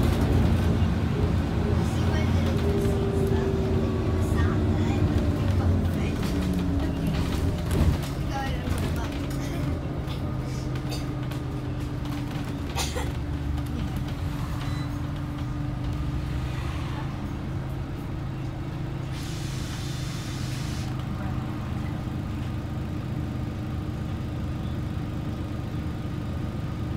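A bus engine hums and whines as the bus drives along.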